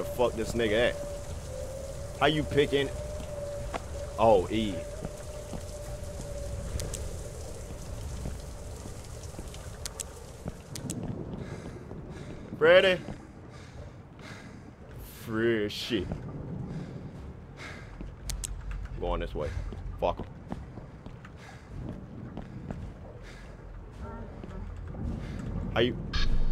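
A young man speaks in bursts with animation, close to a microphone.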